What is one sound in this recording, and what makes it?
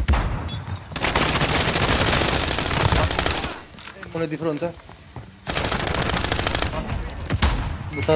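Rapid gunfire rattles loudly in quick bursts.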